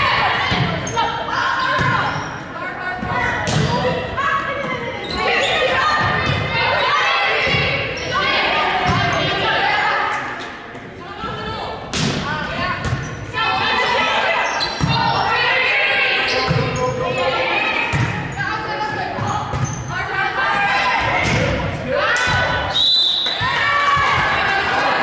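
Sneakers squeak on the hard court.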